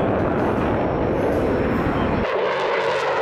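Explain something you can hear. A jet engine roars loudly as a fighter plane takes off.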